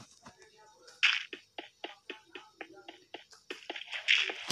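Stone blocks crack and crumble in a quick, even series of taps.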